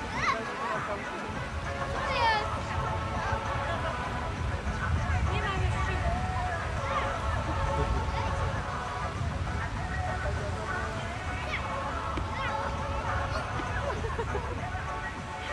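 Children shout and squeal as they play.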